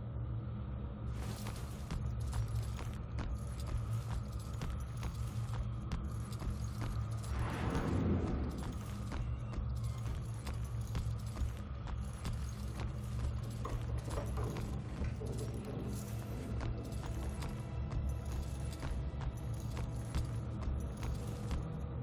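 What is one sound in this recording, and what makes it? Footsteps tread steadily across a wooden floor.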